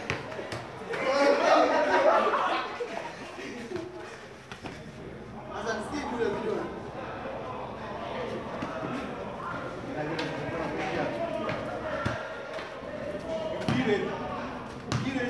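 Young men talk and laugh nearby.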